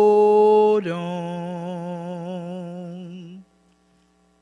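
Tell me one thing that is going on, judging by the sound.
A woman sings a long held note with vibrato close to a microphone, then stops.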